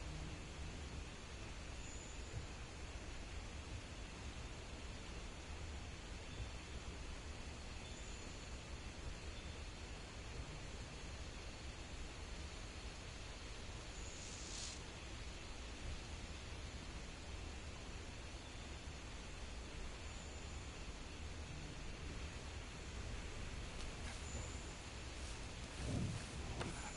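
Insects and night creatures hum steadily in a dense forest.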